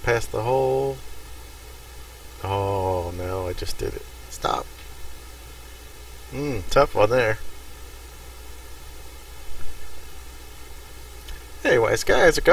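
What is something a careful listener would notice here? A middle-aged man talks casually into a close microphone, in short bursts.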